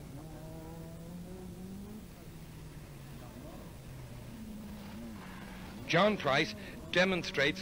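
A rally car engine roars and revs hard as the car speeds past close by.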